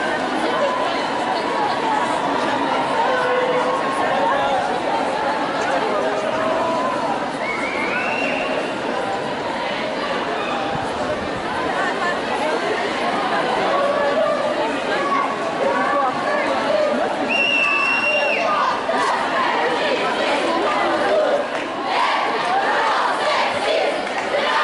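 A large crowd of marchers chatters and calls out outdoors.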